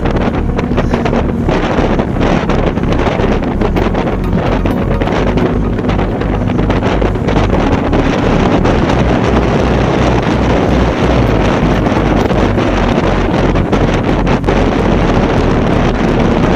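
Bicycle tyres hum steadily on a smooth road.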